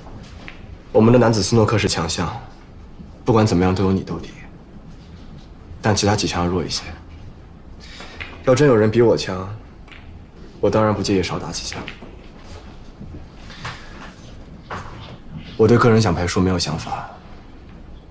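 A second young man speaks calmly and firmly, close by.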